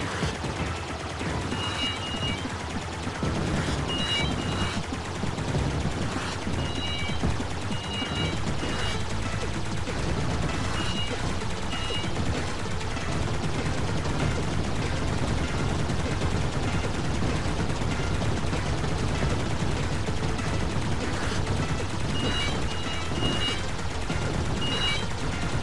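Arcade game lasers fire in rapid bursts.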